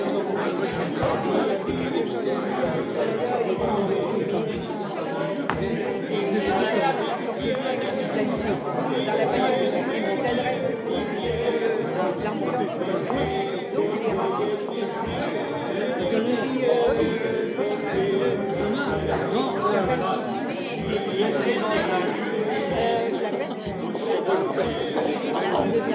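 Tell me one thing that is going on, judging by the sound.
A crowd of men and women chatters throughout a large, echoing hall.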